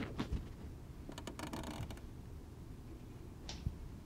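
Bare feet patter on wooden stairs.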